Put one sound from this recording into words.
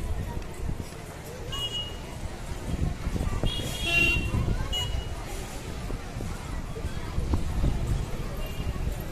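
A large procession shuffles along a street outdoors.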